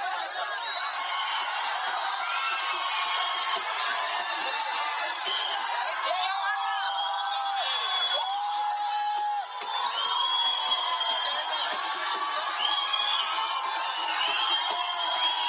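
A large crowd shouts and cheers excitedly outdoors.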